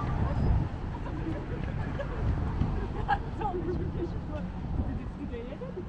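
Men and women talk in a murmur nearby.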